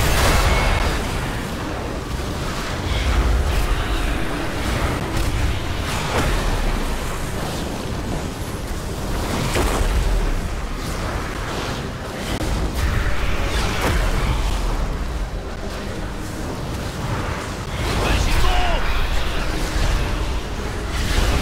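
Game spell and combat sound effects crackle and boom through a battle.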